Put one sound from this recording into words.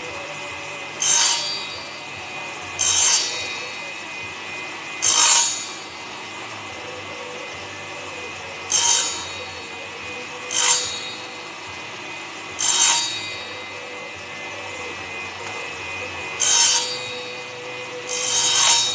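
A man sands a small piece of wood in short, scratchy bursts.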